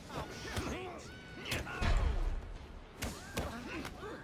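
Fists land heavy thuds in a brawl.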